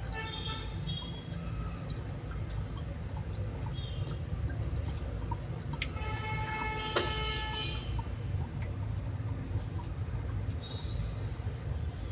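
A metal tongue cleaner scrapes wetly across a tongue.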